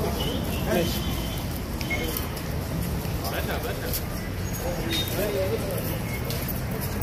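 A crowd of men talks and murmurs outdoors, close by.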